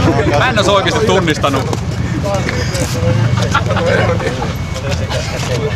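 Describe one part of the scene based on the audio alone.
Several men chat and laugh outdoors.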